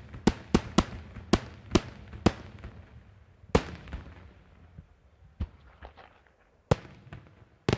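Fireworks burst overhead with loud, sharp bangs that echo across the open sky.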